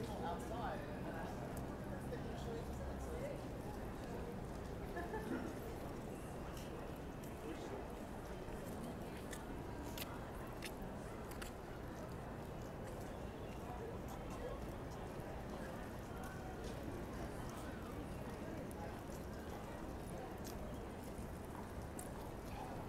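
A busy outdoor plaza hums with distant city noise and faint voices of a crowd.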